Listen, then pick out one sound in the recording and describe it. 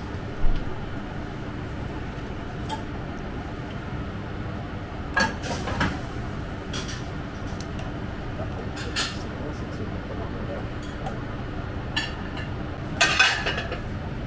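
A spoon clinks against a plate.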